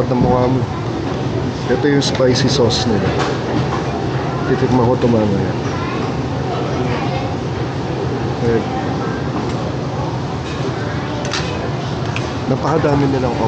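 Men and women chatter nearby in a busy room.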